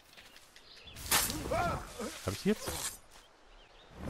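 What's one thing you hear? Leafy bushes rustle as someone pushes through them.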